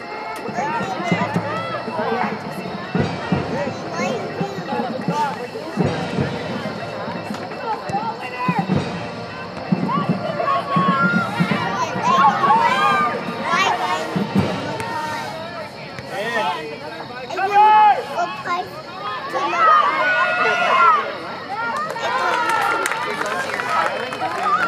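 Young women on a field shout to each other.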